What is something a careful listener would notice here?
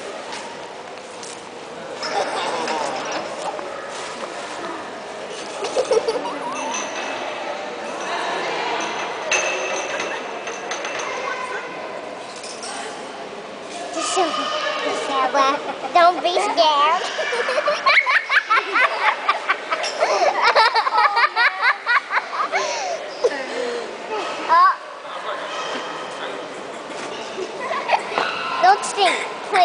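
Women chatter nearby in a large echoing hall.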